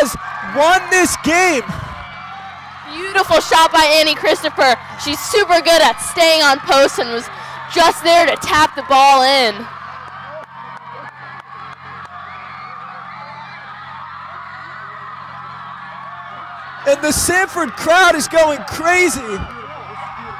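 Young women in a crowd scream and cheer loudly outdoors.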